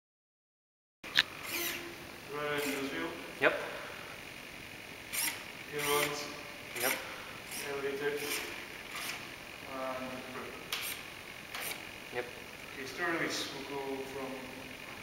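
Small servo motors whir in short bursts.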